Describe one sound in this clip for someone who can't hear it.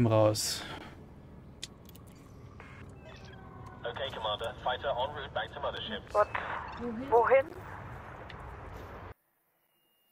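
Game sounds of a spaceship hum and whoosh from speakers.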